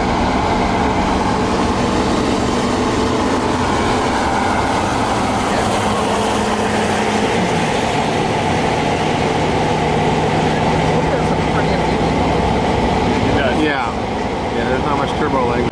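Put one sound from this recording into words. A truck engine hums steadily while driving.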